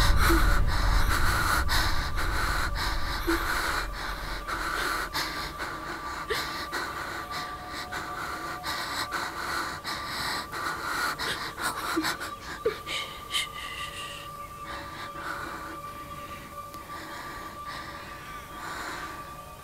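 A young woman breathes heavily and gasps in fear.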